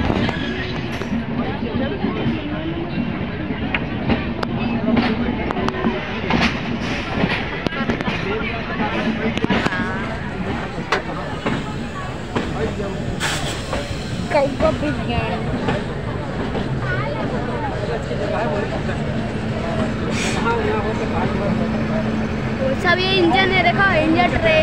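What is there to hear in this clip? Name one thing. Train wheels click and knock over rail joints.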